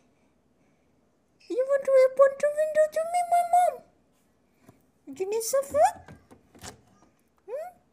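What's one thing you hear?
A squirrel cracks and nibbles sunflower seeds.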